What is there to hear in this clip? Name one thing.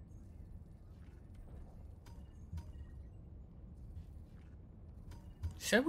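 Soft game menu blips sound as selections change.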